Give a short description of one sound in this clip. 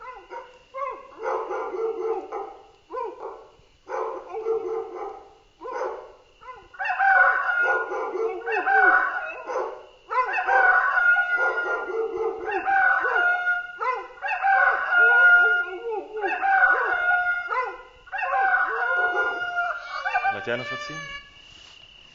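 A young man sings in short phrases close by.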